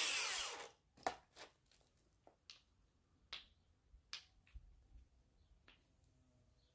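Paving stones clack and tap against each other.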